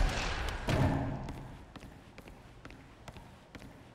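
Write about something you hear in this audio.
A heavy door swings open.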